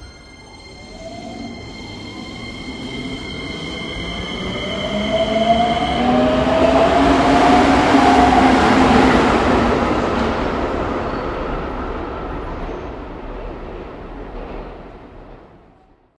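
An electric train's motor whines, rising in pitch as the train pulls away.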